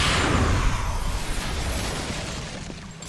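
A fiery blast roars and fades.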